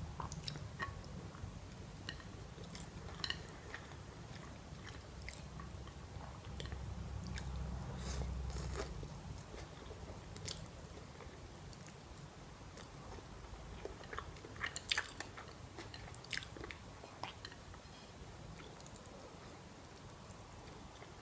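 A young woman slurps noodles up close.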